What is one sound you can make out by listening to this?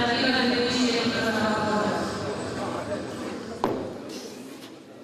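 A crowd of onlookers chatters and calls out.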